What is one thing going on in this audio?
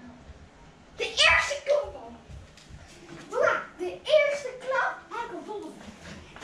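A young boy shouts excitedly nearby.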